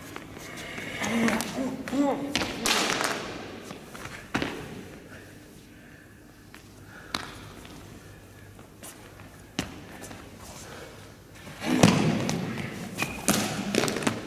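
A man shouts sharply in an echoing hall.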